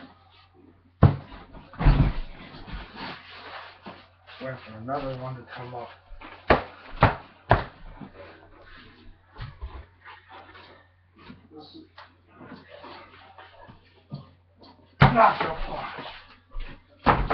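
Bodies thump onto a mattress.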